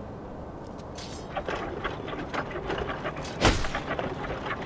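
A grappling hook whooshes as a rope pulls taut.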